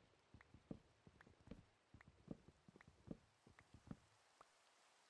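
An axe chops wood with quick, repeated knocks.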